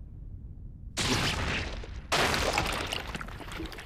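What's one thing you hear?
A blade slashes with a loud rushing whoosh.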